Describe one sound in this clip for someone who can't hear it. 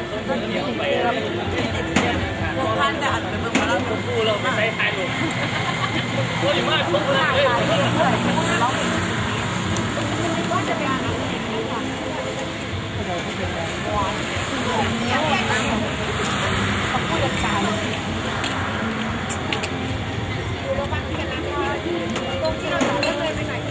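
A crowd of young men and women chatter and laugh at close range, outdoors.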